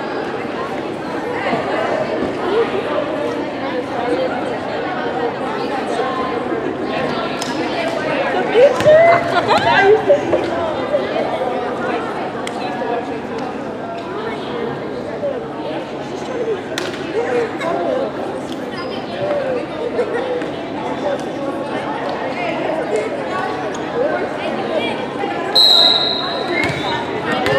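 Young women chatter and call out across a large echoing gym.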